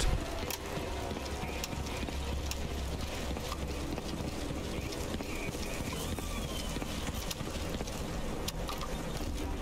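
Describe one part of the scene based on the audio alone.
Footsteps walk across stone paving.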